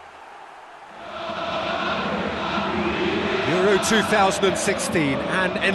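A large stadium crowd roars and murmurs.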